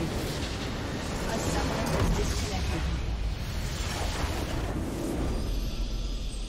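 Video game spell effects blast and crackle loudly.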